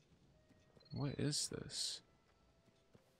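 A young man speaks briefly with animation into a close microphone.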